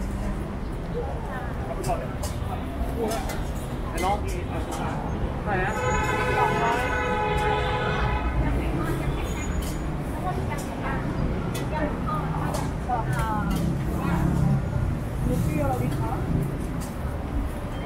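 Plastic containers and utensils clatter.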